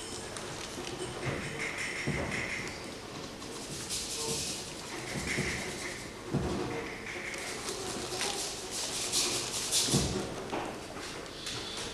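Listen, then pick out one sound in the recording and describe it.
A second man answers theatrically, heard from a distance in a hall.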